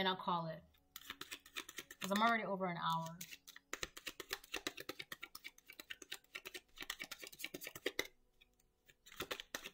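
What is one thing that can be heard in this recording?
Cards riffle and shuffle rapidly.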